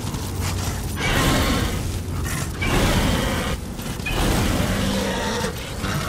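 Flames roar and whoosh behind a running horse.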